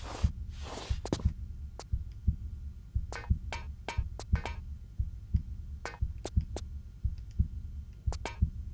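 Footsteps thud rhythmically on a metal floor.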